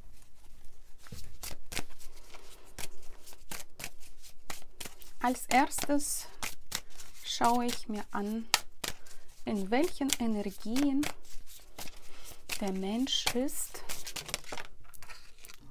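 Playing cards are shuffled with quick, rapid flicks.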